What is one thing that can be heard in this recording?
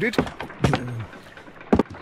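A second man speaks with surprise, close by.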